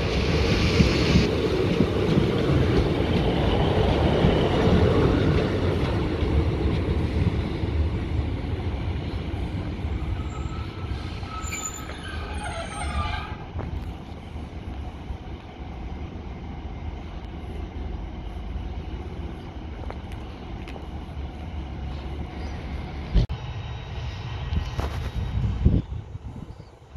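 A Class 153 diesel railcar's engine roars as it pulls away and slowly fades into the distance.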